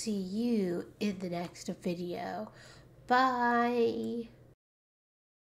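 A young woman speaks with animation close to a microphone.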